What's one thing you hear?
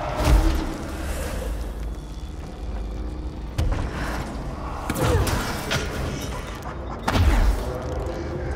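A heavy metal crate crashes and booms as it is hurled through the air.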